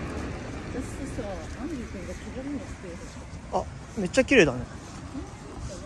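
A small dog whines and yelps nearby.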